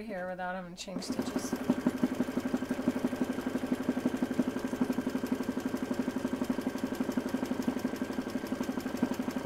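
A sewing machine runs steadily, its needle stitching rapidly.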